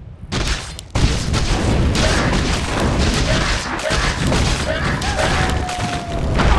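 Magic spells crackle and clash in a fast fight.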